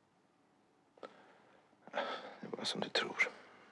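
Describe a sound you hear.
A man speaks quietly and intently, close by.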